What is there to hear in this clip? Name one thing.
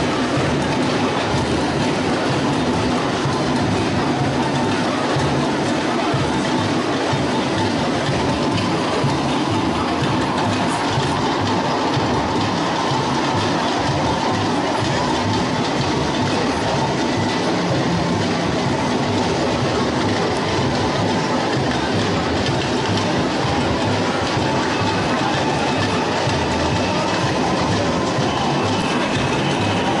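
A large crowd of marchers chants and cheers loudly outdoors.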